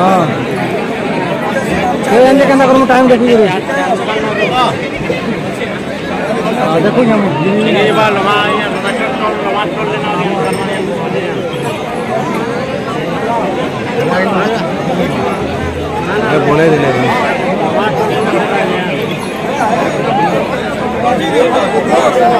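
A large crowd of men shouts and chants loudly close by, outdoors.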